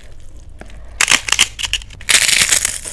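Crisp flatbread cracks and tears apart close by.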